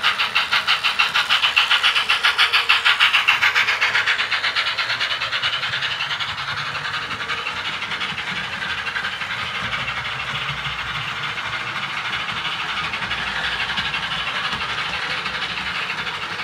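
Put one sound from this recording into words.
A model train clicks rapidly along its track, loud at first and then growing softer as it moves away.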